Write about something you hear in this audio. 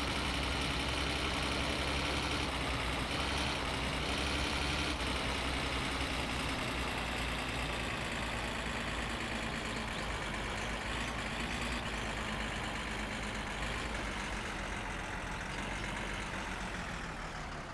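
Tyres crunch over a gravel road.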